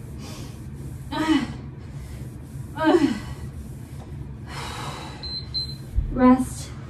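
A woman breathes hard and exhales with effort during exercise.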